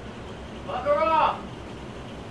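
A young man speaks cheerfully close by.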